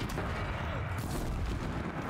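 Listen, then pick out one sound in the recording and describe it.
A weapon fires with a sharp, booming blast.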